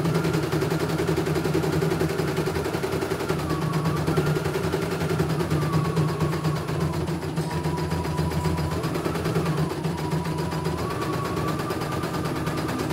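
An embroidery machine stitches with a fast, steady whirring and rattling hum.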